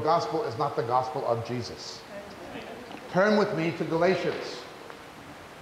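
A man speaks steadily into a microphone.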